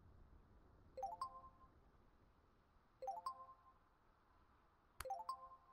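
A short electronic alert chime sounds several times.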